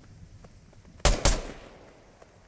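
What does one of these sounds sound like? A single gunshot cracks sharply.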